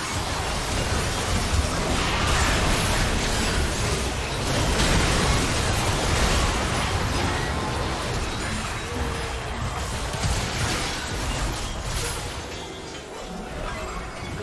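Spell blasts and magical impacts crackle and boom in a hectic game fight.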